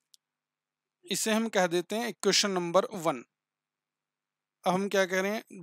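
A man speaks calmly and explains into a close microphone.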